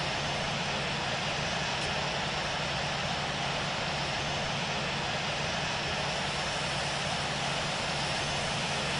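A jet engine roars steadily as an airliner taxis.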